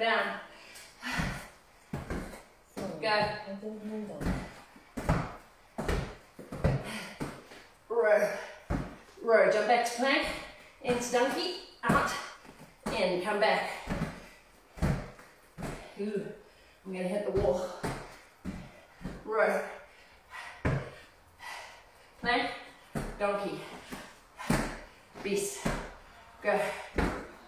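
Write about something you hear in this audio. Dumbbells knock on a rubber floor.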